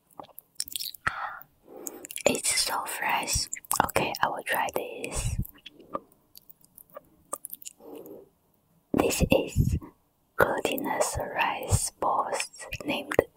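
A young woman speaks softly and cheerfully, close to a microphone.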